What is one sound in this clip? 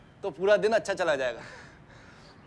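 A man laughs heartily close by.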